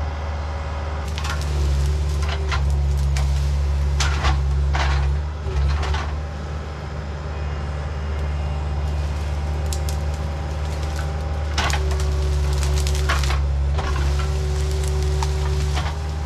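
Brush and branches crack and snap as a machine pushes through them.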